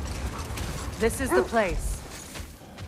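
Wolves yelp in a quick burst.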